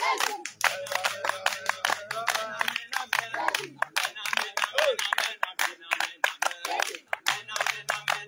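Several men clap their hands in a steady rhythm.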